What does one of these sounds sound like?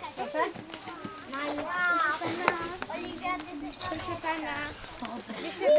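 Several young girls chatter outdoors.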